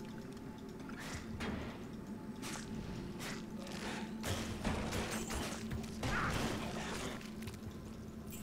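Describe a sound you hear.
Magic spells burst and crackle in quick succession.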